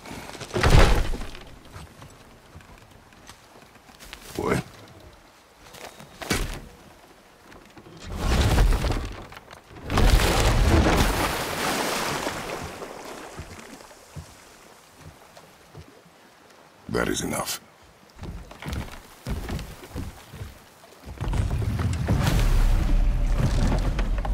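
A river rushes and splashes nearby.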